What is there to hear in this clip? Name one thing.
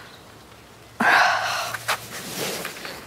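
A teenage girl exhales loudly, close by.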